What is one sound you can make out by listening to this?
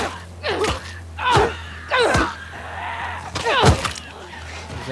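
Heavy blows thud during a violent struggle.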